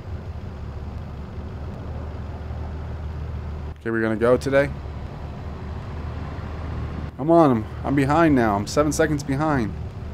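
A city bus engine idles with a low hum.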